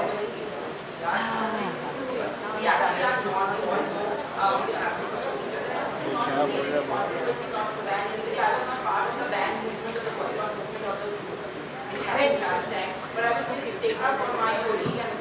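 A woman speaks into a microphone over loudspeakers.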